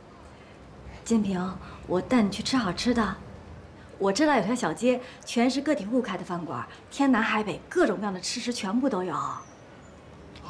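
A young woman speaks calmly and warmly, close by.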